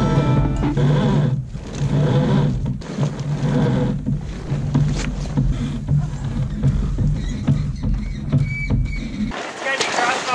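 A sail flaps and rustles as it is hoisted.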